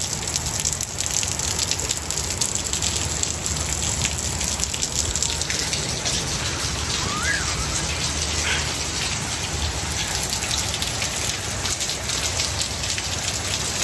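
Steady rain patters and splashes outdoors.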